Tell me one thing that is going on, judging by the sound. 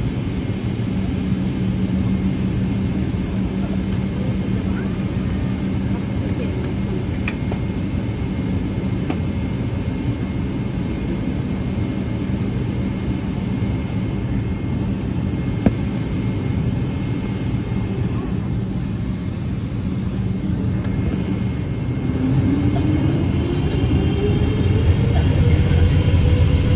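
A jet engine roars steadily, heard from inside an aircraft cabin.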